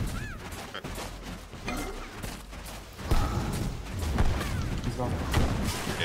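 Game spells whoosh and crackle with bursts of magic impacts.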